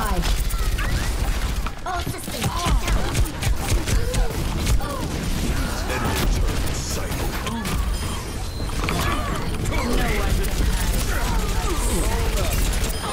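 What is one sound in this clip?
Rapid gunfire bursts loudly and repeatedly.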